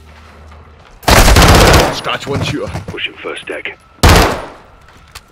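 A submachine gun fires short, loud bursts close by.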